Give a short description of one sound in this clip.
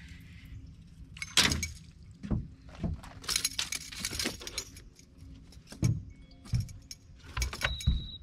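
Water splashes beside a small boat.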